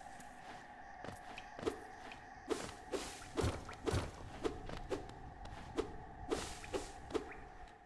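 Small light footsteps tap along at an uneven pace.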